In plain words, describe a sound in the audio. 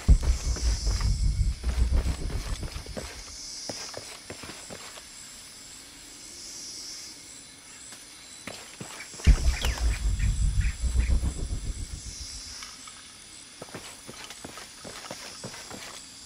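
Footsteps fall on dirt and stone.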